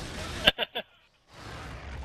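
A futuristic energy weapon fires in short bursts.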